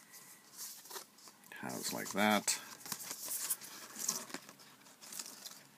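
A record sleeve rustles and slides in a man's hands.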